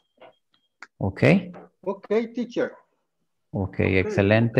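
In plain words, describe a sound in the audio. A man speaks with animation through an online call.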